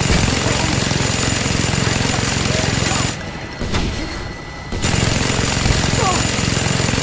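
A mounted machine gun fires in loud, rapid bursts.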